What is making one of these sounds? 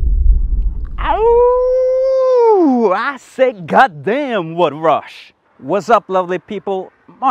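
A man shouts a long drawn-out call, then speaks loudly with animation close by.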